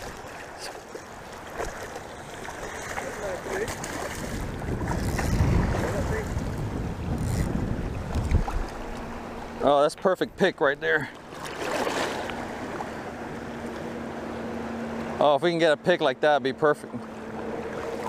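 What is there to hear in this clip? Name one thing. Shallow choppy water laps and splashes.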